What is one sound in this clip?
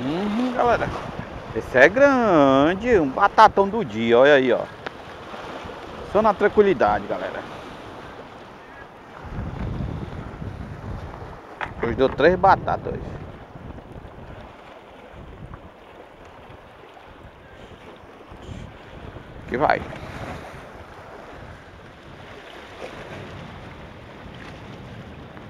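Waves splash against rocks close by.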